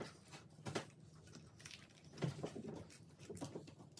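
Paper crinkles and rustles under hands.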